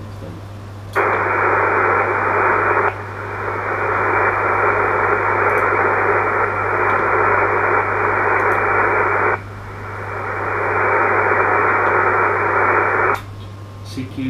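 A radio hisses loudly with steady static.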